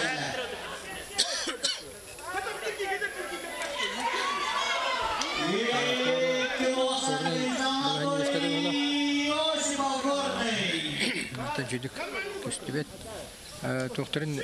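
Several men talk nearby with urgency.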